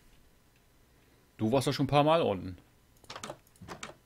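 A wooden door opens.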